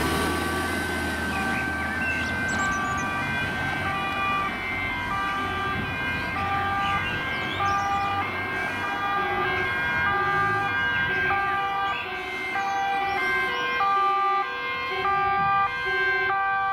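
Emergency vehicle sirens wail in a two-tone pattern, growing louder as they approach.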